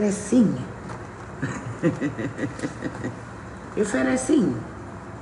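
A middle-aged woman speaks with animation, close to a microphone.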